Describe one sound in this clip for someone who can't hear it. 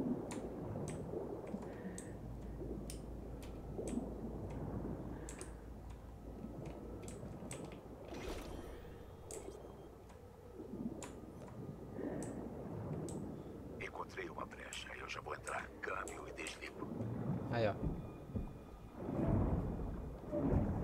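Water swirls and bubbles in a muffled underwater rush.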